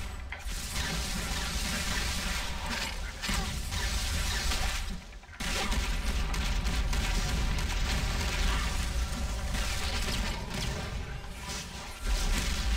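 Gunshots and energy blasts crackle rapidly in a noisy fight.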